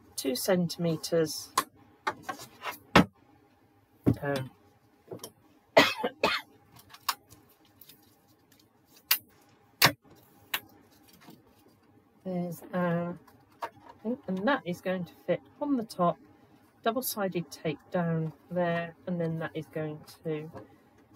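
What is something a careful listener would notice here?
Stiff paper rustles and slides as hands handle it.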